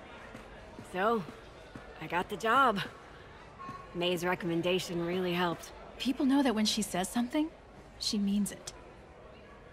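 A woman speaks cheerfully and with animation, close by.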